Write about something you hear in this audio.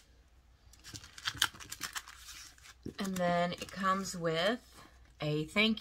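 Paper cards shuffle and tap together.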